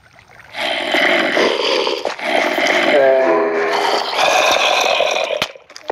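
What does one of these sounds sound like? A video game zombie groans.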